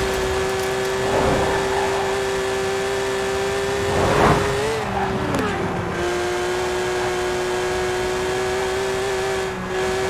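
Wind rushes past a speeding car.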